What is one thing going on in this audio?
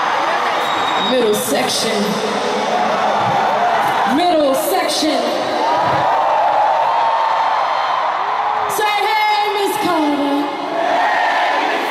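A woman sings through a loudspeaker.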